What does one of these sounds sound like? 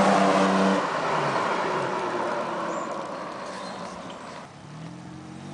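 A pickup truck's engine roars as it pulls away, then fades into the distance.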